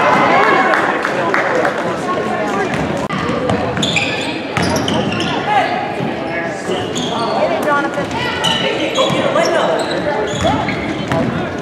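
A crowd of spectators talks and shouts in an echoing gym.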